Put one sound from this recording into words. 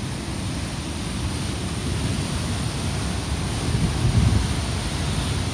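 Water rushes and roars steadily over a weir close by.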